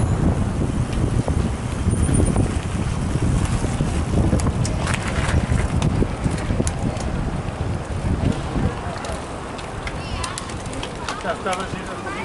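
Bicycle wheels rattle over cobbles.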